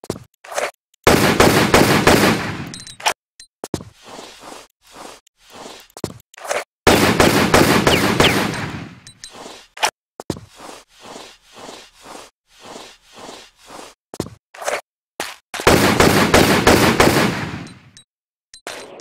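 Pistols fire in rapid bursts of shots.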